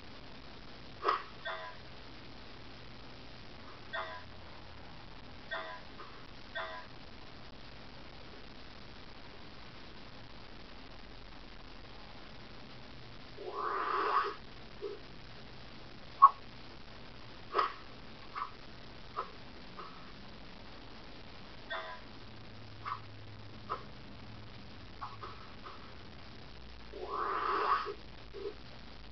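Short cartoon game sound effects pop and boing from a small speaker.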